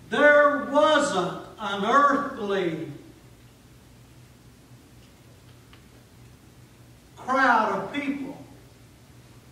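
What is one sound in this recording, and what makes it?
A middle-aged man speaks with animation through a microphone in a room with some echo.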